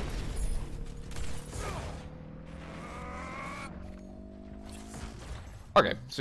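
Game weapons fire with electronic zaps and bursts.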